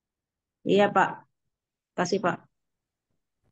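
A woman speaks briefly over an online call.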